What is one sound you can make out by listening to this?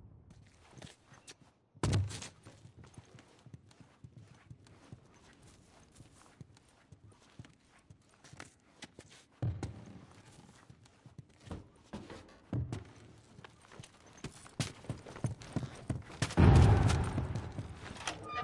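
Footsteps patter quickly over a hard floor.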